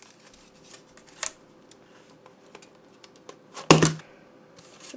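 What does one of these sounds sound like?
A small plastic part clicks into place.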